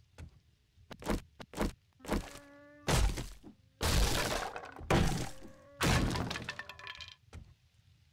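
A heavy power tool chews into wood in loud, repeated bursts.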